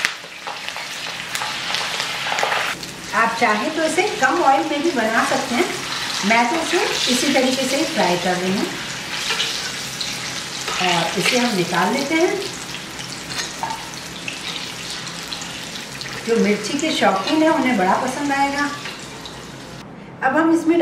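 Hot oil sizzles and bubbles steadily.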